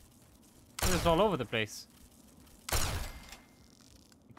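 A weapon fires with a loud crackling burst.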